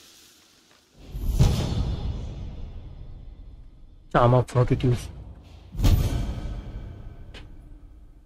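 A bright chime rings out and slowly fades.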